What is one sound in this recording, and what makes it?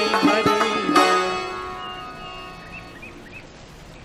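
A small ensemble plays plucked strings and a hand drum, ending on a ringing chord.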